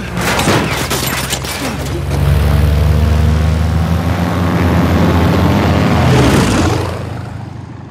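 Propeller engines roar loudly.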